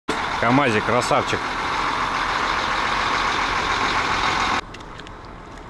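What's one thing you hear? A truck engine idles nearby.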